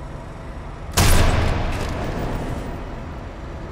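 A rifle fires a single loud shot that echoes.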